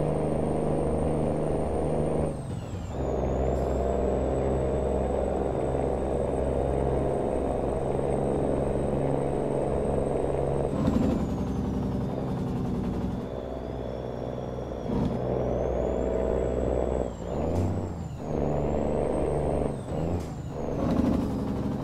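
A truck engine drones steadily, dipping briefly as gears change.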